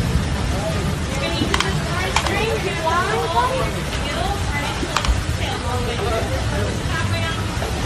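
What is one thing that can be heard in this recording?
Water splashes as alligators thrash.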